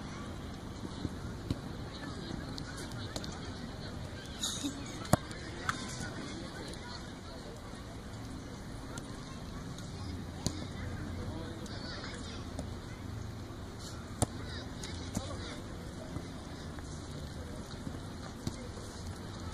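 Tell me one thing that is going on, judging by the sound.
A football is kicked with sharp thumps across an outdoor pitch.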